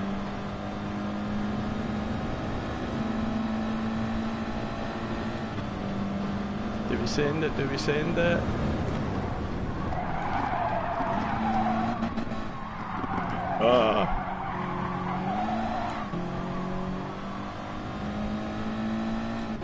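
A racing car engine drones steadily, its pitch rising and dropping with gear changes.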